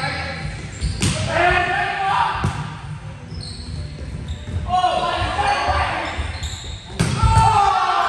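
A volleyball is struck with loud smacks that echo through a large hall.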